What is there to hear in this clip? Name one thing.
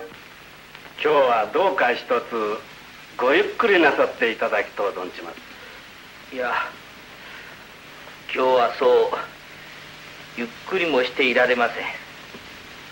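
A man speaks calmly in an old, slightly hissy recording.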